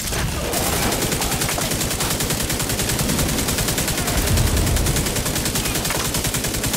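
Rapid gunfire rattles without pause.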